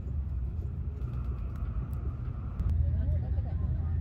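Shrimp shell crackles as fingers peel it.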